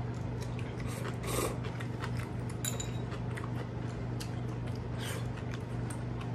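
A young man slurps noodles.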